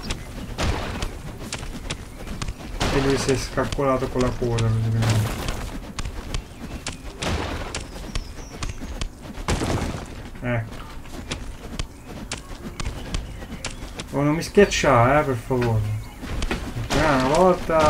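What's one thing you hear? A game pickaxe chops at blocks.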